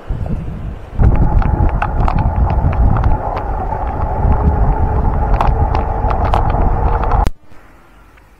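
Wind rushes loudly past during a bicycle ride.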